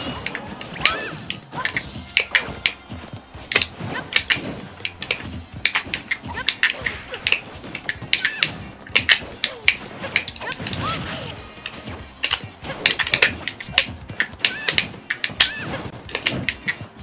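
Punchy hits, whooshes and blasts from a fighting video game sound in quick succession.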